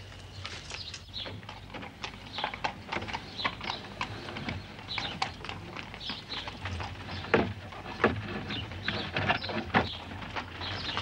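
Horses' hooves and a horse-drawn carriage's wheels clatter on stone paving.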